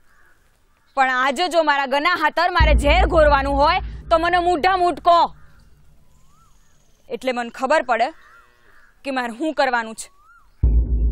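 A young woman speaks earnestly, close by.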